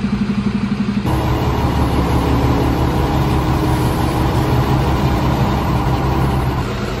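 A fire truck engine idles with a low steady rumble.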